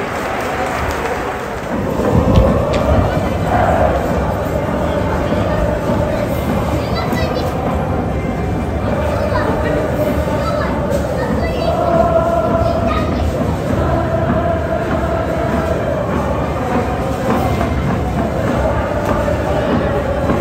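Fans cheer and shout in a large crowd.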